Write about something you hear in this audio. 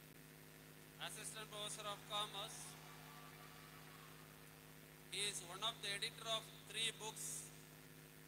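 A man speaks through a microphone and loudspeakers, announcing in short phrases.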